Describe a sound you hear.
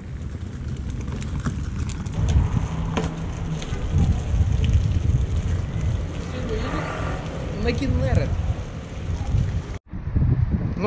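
Cart wheels rumble over paving stones.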